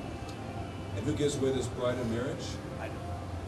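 A man speaks softly nearby.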